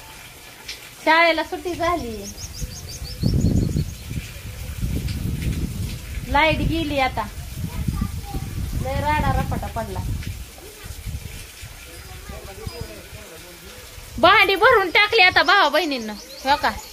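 A woman talks with animation close to the microphone.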